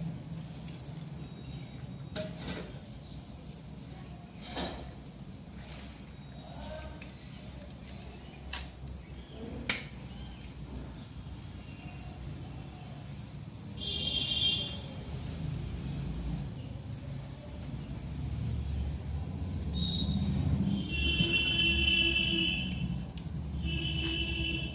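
Water splashes and drips as hair is rinsed.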